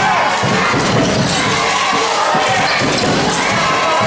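A basketball bounces on a hard wooden floor in a large echoing hall.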